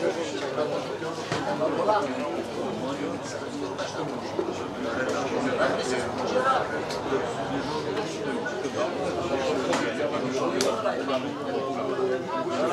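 Several men chatter in the background.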